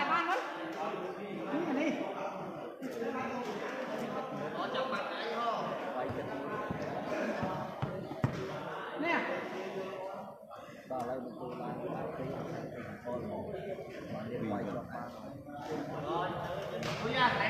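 A crowd of spectators chatters and calls out loudly in a large echoing hall.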